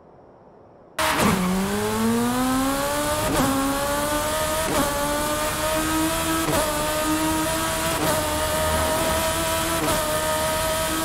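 A car engine revs up hard and climbs through the gears.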